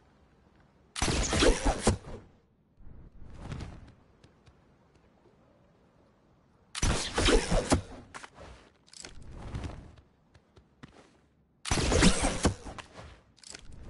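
A pickaxe strikes a metal pole in quick bursts of clanging hits.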